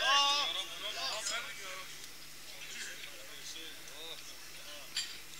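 An elderly man chants in a drawn-out, melodic voice through a loudspeaker.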